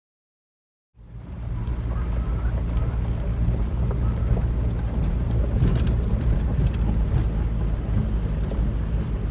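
Tyres roll and crunch over a gravel road.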